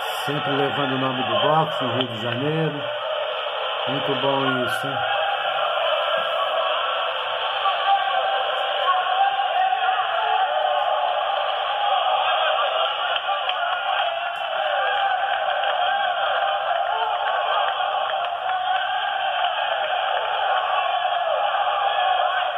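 A crowd of spectators murmurs and calls out in a large hall.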